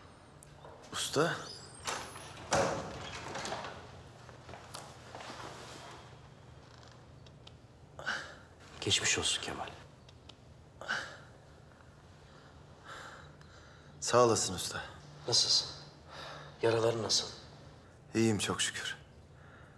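A man speaks quietly and weakly, close by.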